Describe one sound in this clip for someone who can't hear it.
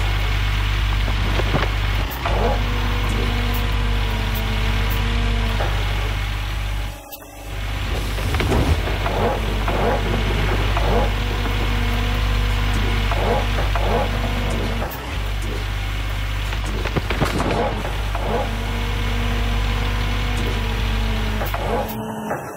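Dirt and gravel pour from a bucket into a truck bed.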